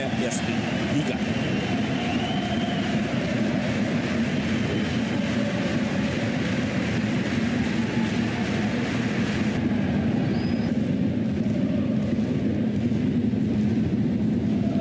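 A large stadium crowd roars and chants steadily all around.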